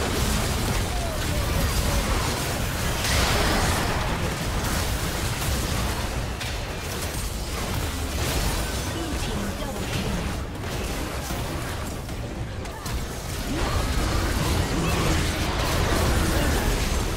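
Game spell effects whoosh and crackle in a fast-paced battle.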